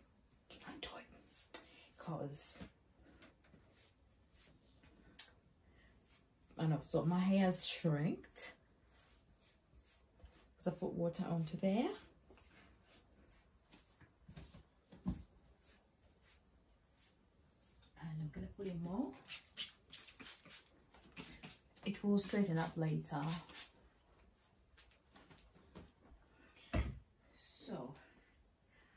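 A young woman talks calmly and closely to the listener in short bursts.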